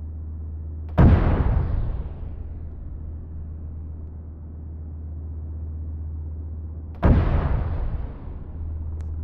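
A heavy gun fires with a loud boom that rumbles away.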